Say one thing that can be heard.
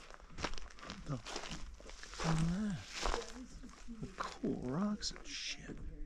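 A man speaks casually close by, outdoors.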